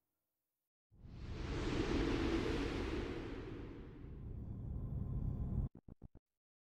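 A soft whooshing burst swells up and then fades.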